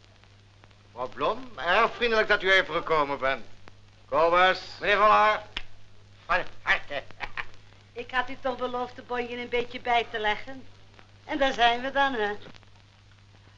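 A middle-aged man speaks with animation, heard through an old film soundtrack.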